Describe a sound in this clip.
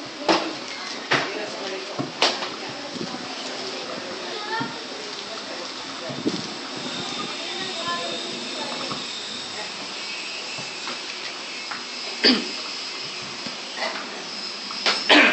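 An electric fan whirs steadily.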